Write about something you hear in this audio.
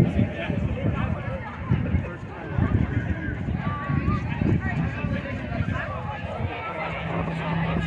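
A marching band plays across a wide open field outdoors.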